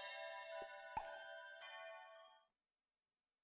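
Game menu music plays.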